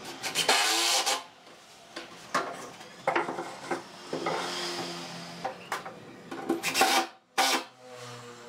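Wooden boards knock and clatter against each other as they are fitted in place.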